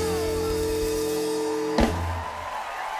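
A woman sings loudly over a band.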